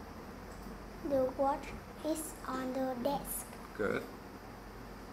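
A young girl speaks calmly close by.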